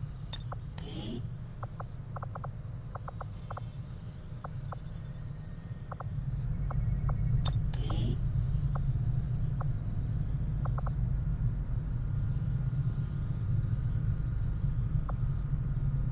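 Short soft clicks sound as menu items are selected.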